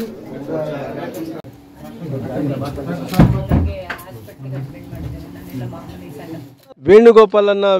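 Several adults talk at once in a crowded room.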